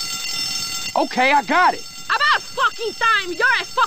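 A man speaks with irritation, close by.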